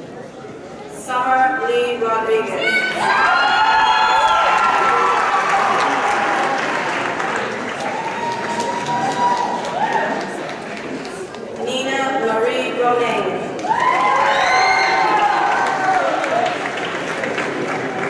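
A woman reads out names over a loudspeaker.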